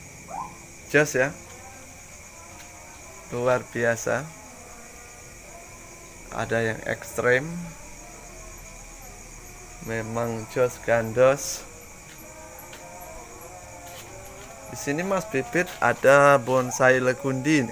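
A man speaks calmly close by, in short bursts.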